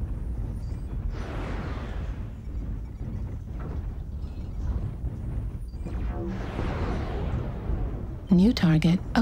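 Missiles whoosh overhead in rushing bursts.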